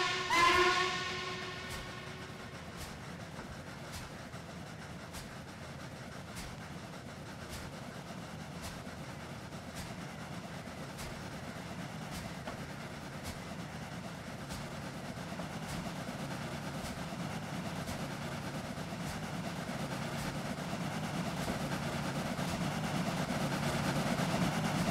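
A steam locomotive chuffs in a steady rhythm as it approaches.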